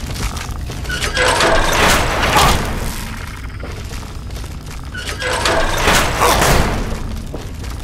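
A heavy metal door grinds and hisses open.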